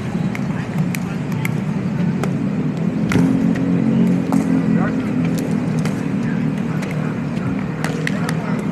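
Paddles hit a plastic ball with sharp pops, outdoors.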